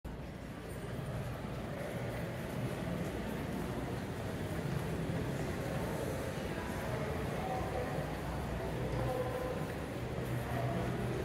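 Footsteps tap on a hard floor in an echoing indoor space.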